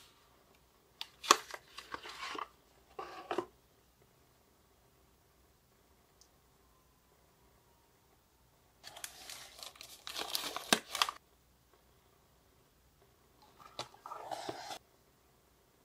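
Paper packaging rustles and crinkles close by.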